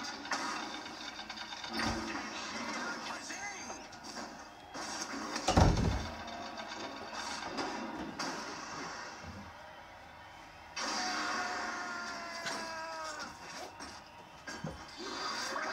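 Game sound effects of hits and blasts burst out through a television speaker.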